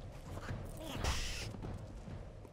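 A magic spell bursts with a sharp whooshing crackle.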